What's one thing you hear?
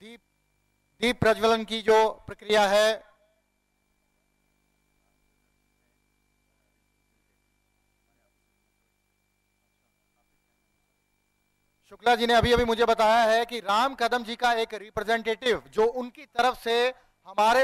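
A woman announces through a loudspeaker.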